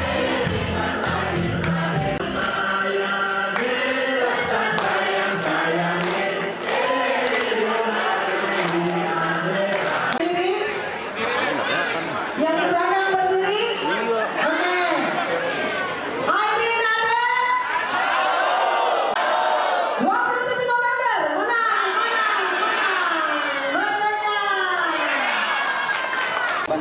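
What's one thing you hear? A crowd of men and women sings loudly together in a large hall.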